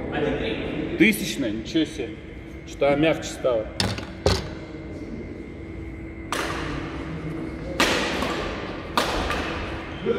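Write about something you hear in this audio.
Badminton rackets smack a shuttlecock back and forth in an echoing hall.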